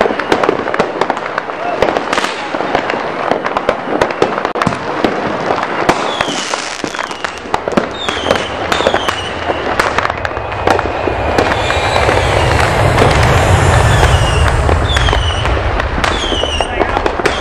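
Fireworks bang and crackle outdoors, one burst after another.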